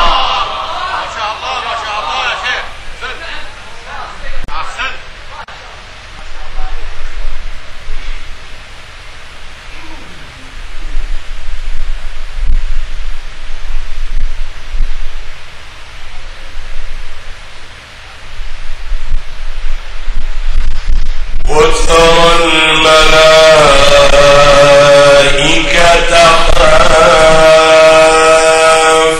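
A man chants loudly into a microphone, his voice ringing through a loudspeaker with echo.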